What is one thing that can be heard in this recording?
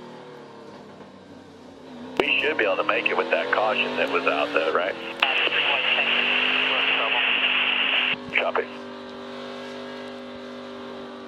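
A race truck engine drones loudly from inside the cab, rising and falling in pitch with gear changes.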